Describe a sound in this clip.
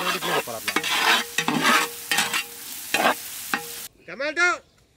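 A metal ladle scrapes and knocks against a metal pot.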